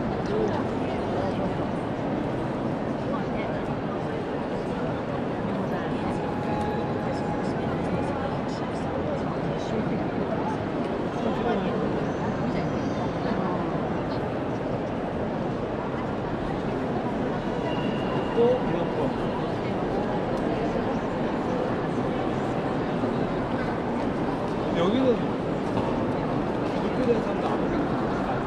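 A crowd murmurs steadily, echoing through a large hall.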